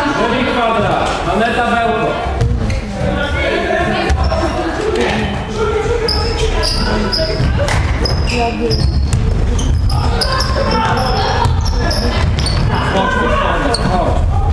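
Young women call out to each other across an echoing hall.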